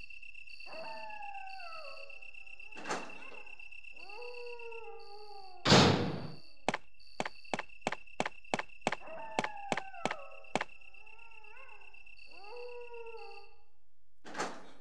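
A heavy door creaks slowly open.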